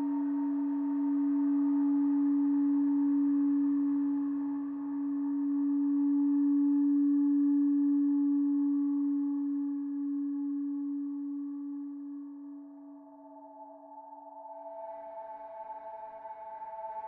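A synthesizer drones on a steady low tone that slowly fades.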